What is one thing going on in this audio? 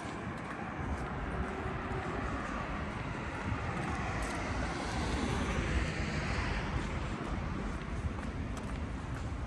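Traffic hums steadily along a nearby road.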